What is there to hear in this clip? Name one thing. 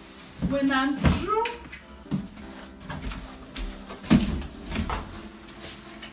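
A cardboard box scrapes and thumps.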